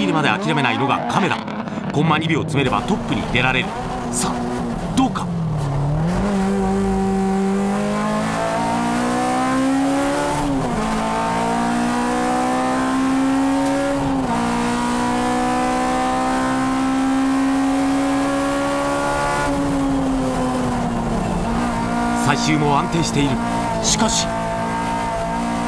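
Tyres squeal as a car slides through corners.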